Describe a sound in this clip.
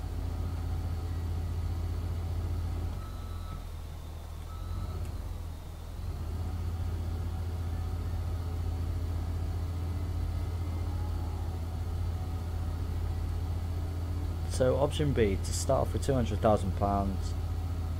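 A tractor engine hums steadily at low pitch.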